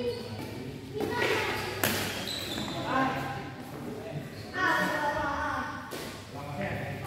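A shuttlecock is struck sharply with a racket in a large echoing hall.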